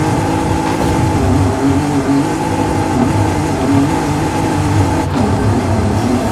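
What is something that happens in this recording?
A car engine roars steadily as it accelerates.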